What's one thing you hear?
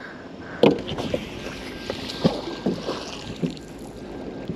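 A heavy object splashes into nearby water.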